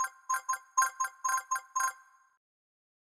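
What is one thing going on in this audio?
Bright chimes ring in quick succession as gems are picked up.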